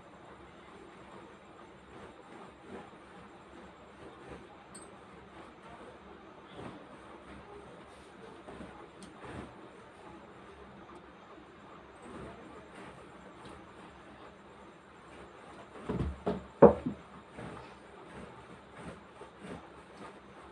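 An iron slides and rustles over cloth.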